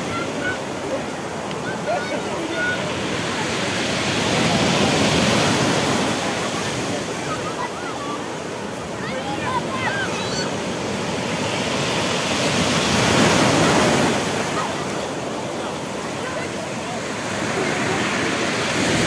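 Waves crash and wash onto a pebble beach in steady surges.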